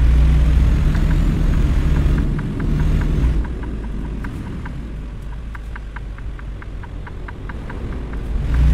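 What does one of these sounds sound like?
A turn signal ticks rapidly.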